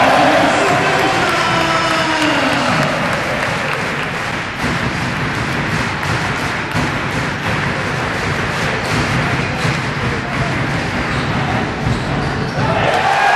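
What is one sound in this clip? A large crowd cheers and chants loudly in an echoing indoor hall.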